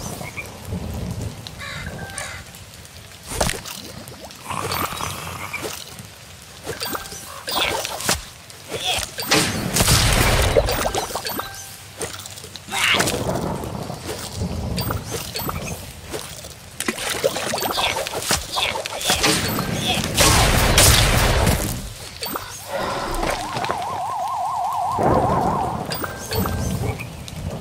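Game sound effects pop and chime.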